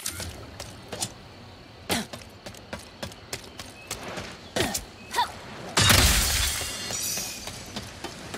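Footsteps tap quickly on a metal floor.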